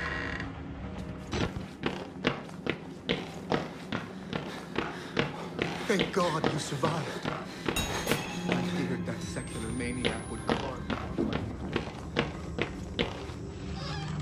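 Footsteps thud quickly on a hard floor in an echoing building.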